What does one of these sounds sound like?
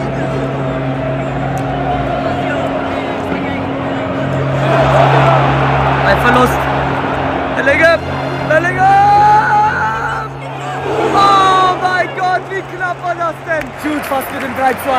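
A large stadium crowd roars and chants loudly.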